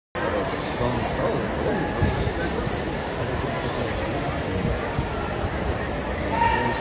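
A large crowd chatters in a big echoing hall.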